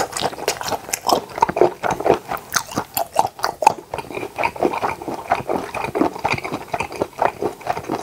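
A man chews food wetly and loudly close to a microphone.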